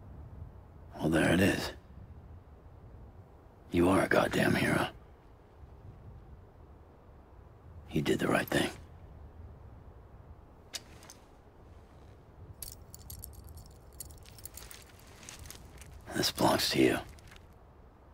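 A man speaks quietly in a low voice nearby.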